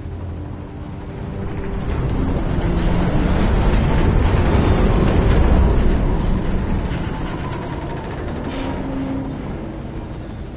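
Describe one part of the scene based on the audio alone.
A helicopter engine rumbles steadily in flight, swelling louder and then easing off.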